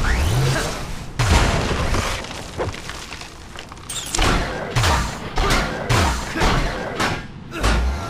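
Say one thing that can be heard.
Heavy thuds and crashes of blows land in quick succession.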